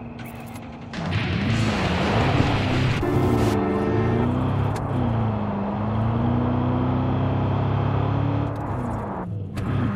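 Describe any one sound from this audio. A car engine starts and revs loudly, rising and falling in pitch.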